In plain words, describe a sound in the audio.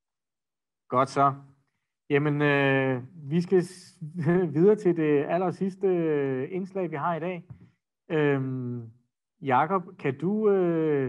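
A man talks with animation over an online call.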